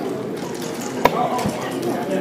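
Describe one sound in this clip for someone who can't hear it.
A game clock's button clicks once.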